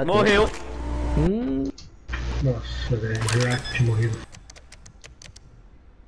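A bomb keypad beeps as keys are pressed.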